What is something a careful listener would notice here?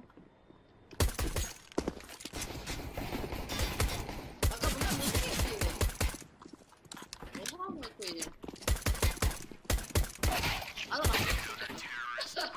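Silenced gunshots fire in rapid bursts.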